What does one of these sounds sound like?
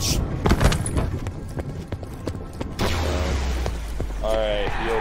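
A gun fires in quick, sharp shots.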